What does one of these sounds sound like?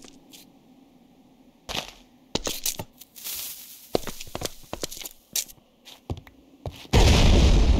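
Footsteps tap on blocks.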